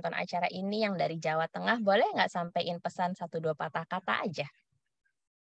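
A young woman speaks with animation over an online call.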